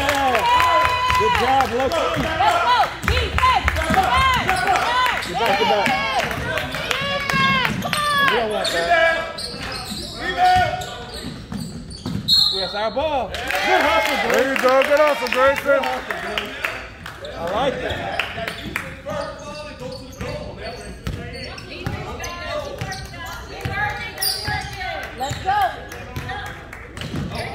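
A crowd of adults and children shouts and cheers loudly in a large echoing hall.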